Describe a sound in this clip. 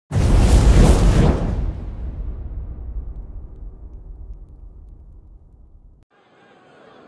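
A burst of fire roars and booms, then slowly fades.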